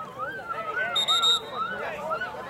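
A referee's whistle blows briefly.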